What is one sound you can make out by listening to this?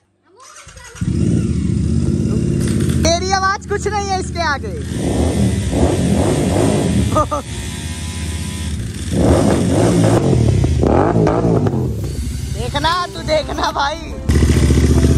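A motorcycle engine starts and idles with a loud, throbbing rumble.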